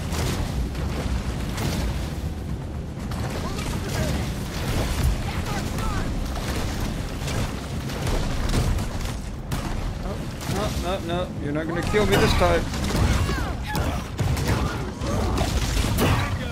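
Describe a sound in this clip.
Water splashes and churns as a large shark thrashes.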